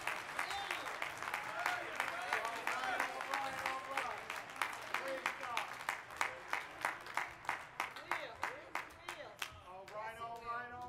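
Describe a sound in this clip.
A crowd claps in a large echoing hall.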